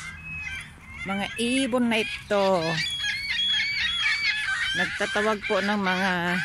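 Gulls call nearby outdoors.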